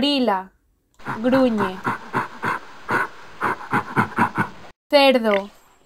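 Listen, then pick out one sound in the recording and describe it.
A gorilla grunts.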